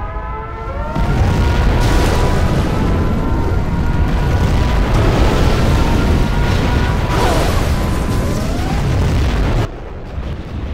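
Huge explosions roar and rumble loudly.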